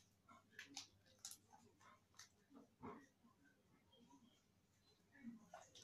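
Sticky slime squelches and pops as it is squeezed in small hands.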